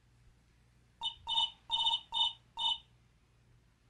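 Quick electronic beeps chirp in short bursts.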